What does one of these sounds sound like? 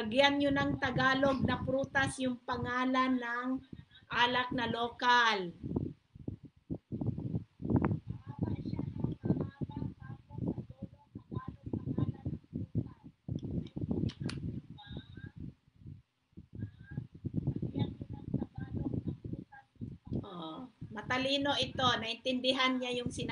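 A young woman sings loudly through a microphone.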